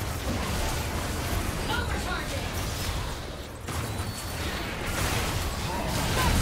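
Magic blasts and weapon hits crackle and thud in a busy fight.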